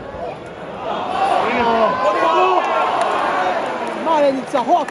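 A crowd of fans roars and cheers.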